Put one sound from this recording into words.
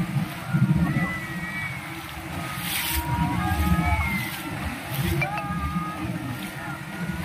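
A crew of men shouts and chants in the distance.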